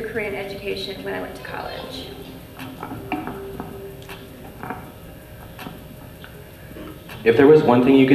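A young woman speaks into a microphone in a large echoing hall.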